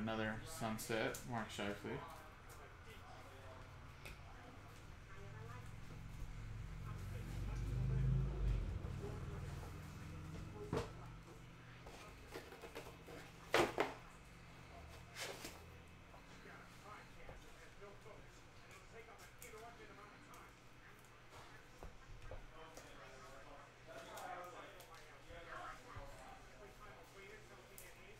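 Trading cards shuffle and tap against each other in hands.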